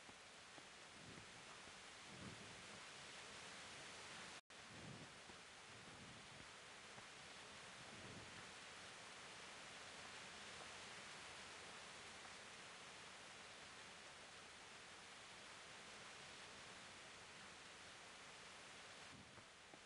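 Footsteps thud slowly on hard ground.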